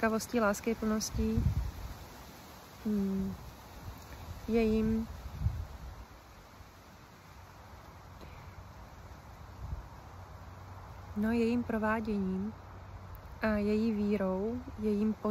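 A woman speaks slowly and hesitantly, close to the microphone.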